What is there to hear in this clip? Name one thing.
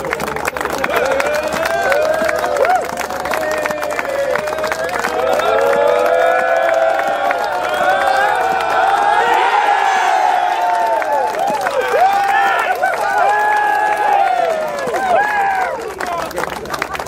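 A group of men shouts and cheers loudly.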